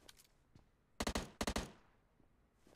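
A rifle fires a few quick bursts of shots.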